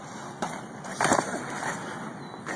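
A bicycle crashes onto pavement with a clatter.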